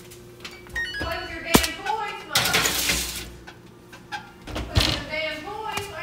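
An oven door opens and closes.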